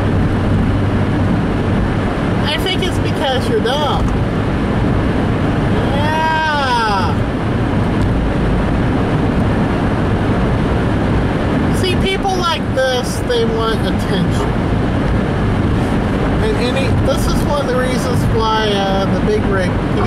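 A car's tyres hiss and rumble steadily on a wet road.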